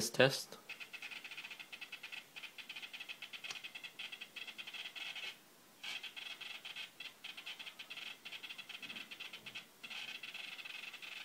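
A small servo motor whines and buzzes.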